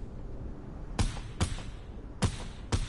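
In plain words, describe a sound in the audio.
A few sharp gunshots ring out.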